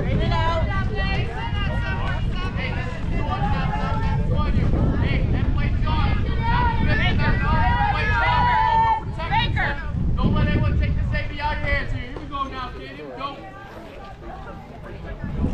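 Young women and men call out and chatter loudly across an open outdoor field.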